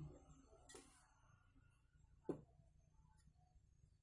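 A gas torch flame hisses softly.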